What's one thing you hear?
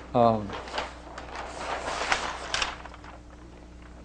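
Paper rustles as a large sheet is flipped over.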